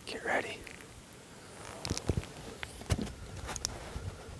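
A bow clicks and creaks as its string is drawn back.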